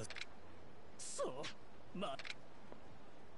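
A man answers in a whimpering voice.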